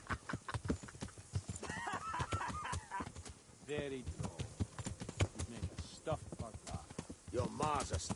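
Horse hooves thud rapidly on a dirt path.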